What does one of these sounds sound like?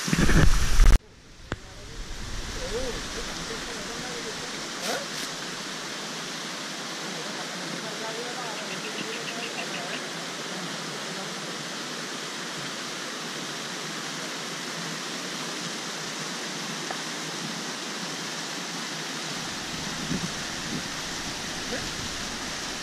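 Water rushes over rocks in a wide stream.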